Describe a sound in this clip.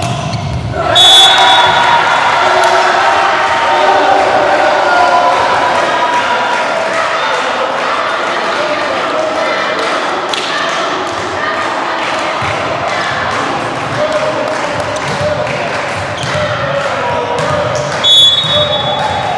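A referee's whistle blows sharply.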